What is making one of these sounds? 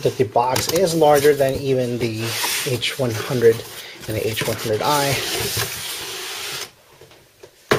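A cardboard box lid slides open with scraping and rustling.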